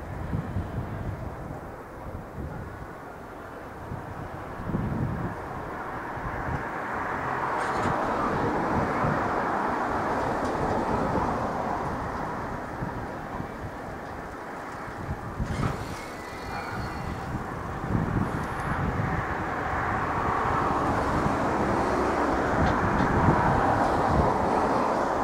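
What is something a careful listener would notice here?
A train rumbles slowly along the tracks nearby.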